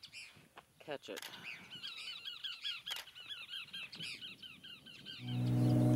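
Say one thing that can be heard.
A large bird flaps its wings in a tree.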